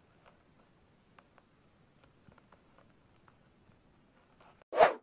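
Small claws scratch and tap softly against paper.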